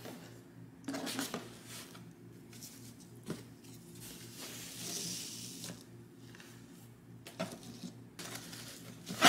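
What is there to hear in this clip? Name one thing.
A ribbon rustles as it is untied.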